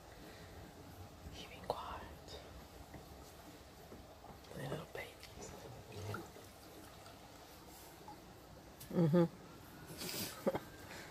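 Water laps gently at a bank.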